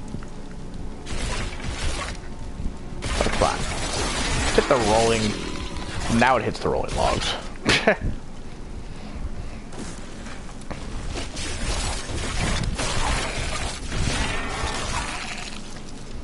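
Skeleton warriors clash with swords and bones rattle in a fight.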